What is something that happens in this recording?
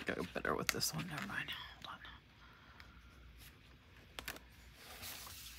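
Paper rustles and crackles as it is handled close by.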